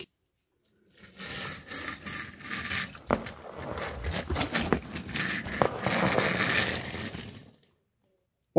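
A toy car rolls across a hard wooden floor.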